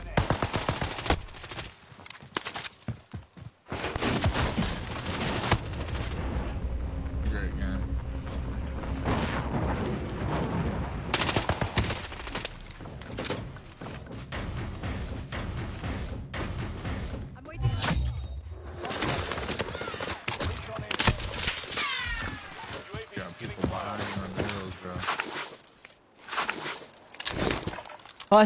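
Pistol shots crack in quick bursts.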